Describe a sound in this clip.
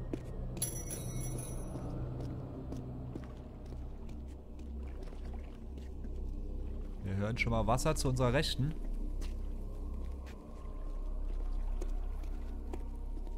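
Footsteps run over a stone floor.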